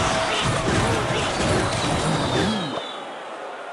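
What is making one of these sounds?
Video game battle effects clash and clatter.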